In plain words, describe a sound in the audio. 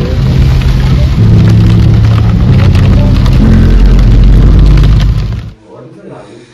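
A car engine rumbles steadily while driving along a road.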